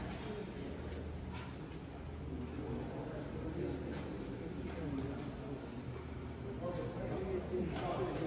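Rackets hit shuttlecocks in a large echoing hall.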